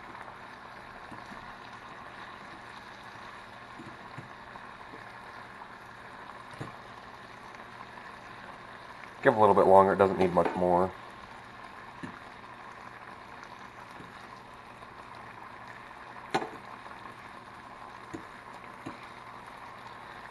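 A fork scrapes and taps against a frying pan.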